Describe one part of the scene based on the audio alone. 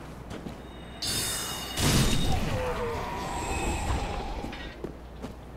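A magic spell flares with a bright shimmering burst.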